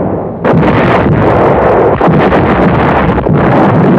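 A heavy gun fires with a deep boom.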